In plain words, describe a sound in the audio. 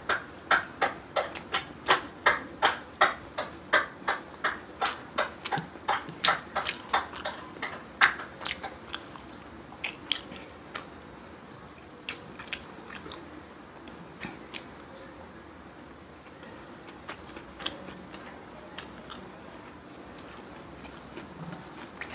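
Fingers squish and mix rice on a metal plate.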